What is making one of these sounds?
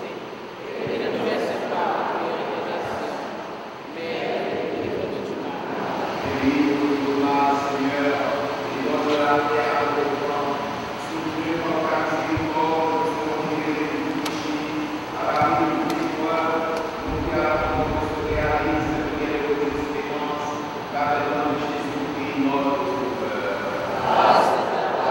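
A congregation sings together in a large echoing hall.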